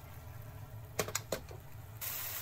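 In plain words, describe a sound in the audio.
A wooden spatula knocks against a pan.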